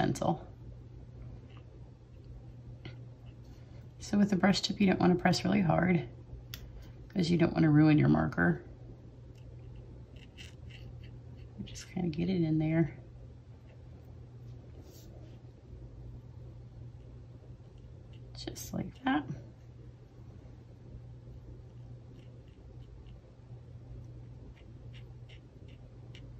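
A felt-tip marker dabs and scratches lightly on card.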